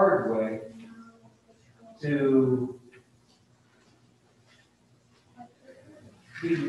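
A middle-aged man speaks calmly in pauses through a microphone in a room with a slight echo.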